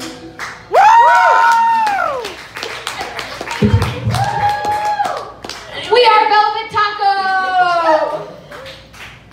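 A young woman sings loudly through a microphone.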